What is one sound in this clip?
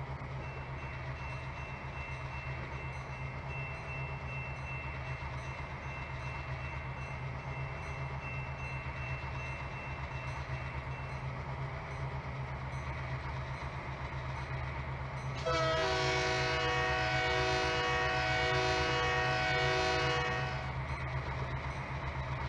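Diesel locomotives rumble as a freight train approaches.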